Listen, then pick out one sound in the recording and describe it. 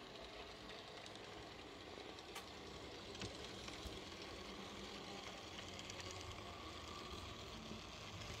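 A model electric locomotive hums and rattles along metal model track.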